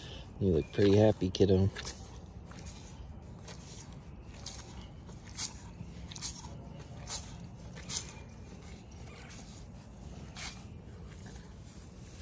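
A hand scratches a cow's hairy head with a soft rustle.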